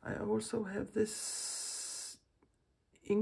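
A spray bottle hisses as it sprays a mist.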